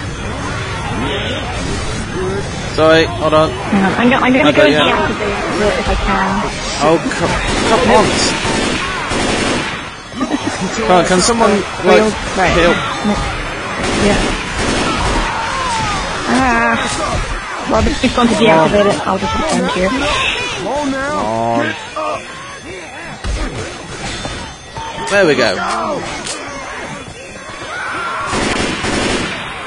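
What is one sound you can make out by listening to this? Several young men and women talk and laugh together over an online call.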